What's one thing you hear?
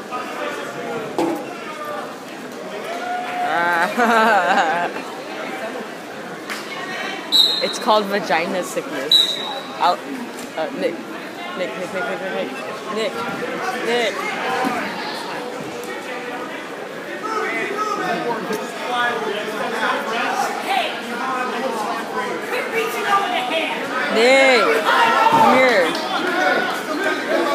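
A crowd of people talk and call out in a large echoing gym.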